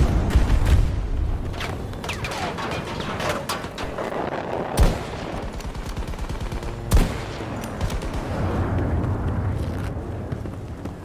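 A helicopter's engine and rotor roar.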